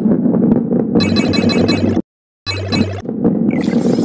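Bright chimes ring out as points are collected.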